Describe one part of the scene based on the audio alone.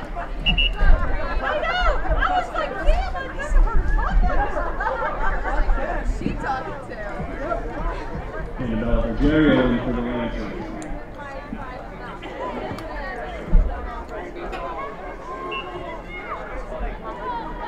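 Young women call out to each other across an open outdoor field.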